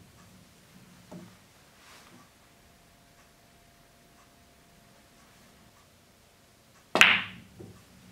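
A billiard ball knocks sharply against a hard edge.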